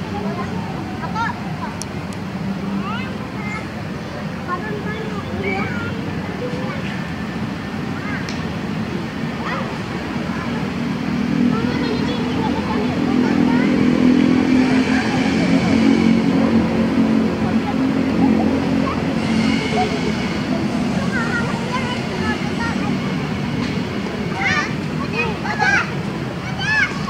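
Young children chatter and squeal nearby outdoors.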